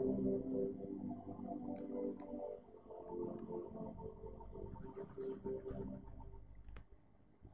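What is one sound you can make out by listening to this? Music plays from a television loudspeaker.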